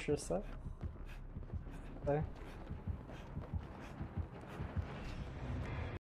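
Footsteps thud quickly on wooden boards.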